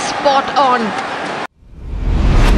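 A crowd cheers and shouts loudly in a large arena.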